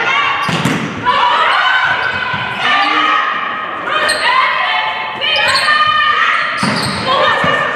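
A volleyball is struck hard with a loud slap.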